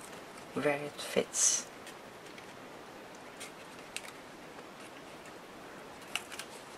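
Paper rustles softly as it is handled.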